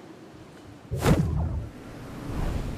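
A loud whoosh bursts out as a jump into the open air begins.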